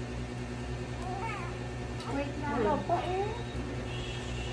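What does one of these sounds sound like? A newborn baby cries out briefly, close by.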